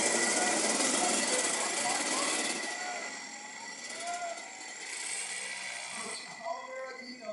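Go-kart engines buzz and rev loudly nearby.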